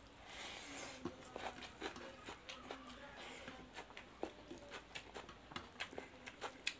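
Fingers squelch and smack in soft food close by.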